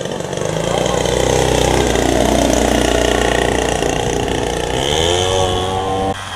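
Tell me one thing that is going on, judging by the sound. A model plane's engine buzzes overhead, rising and falling in pitch as it flies by.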